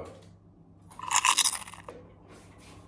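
A young man crunches food while chewing.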